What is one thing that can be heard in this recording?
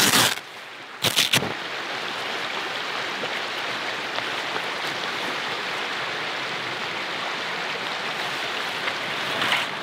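Tent fabric rustles and flaps as hands roll it up.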